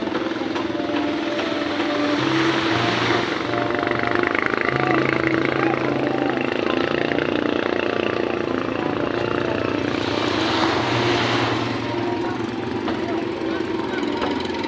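Waves wash up and break on a shore.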